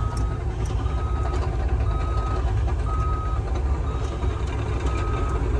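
A heavy machine's diesel engine rumbles steadily, heard from inside the cab.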